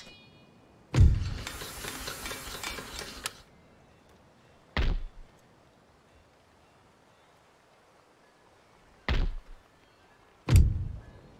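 A game plays short, loud interface sound effects as menus open.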